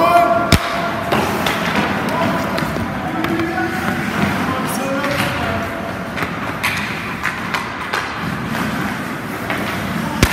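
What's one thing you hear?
Hockey sticks crack sharply against a puck.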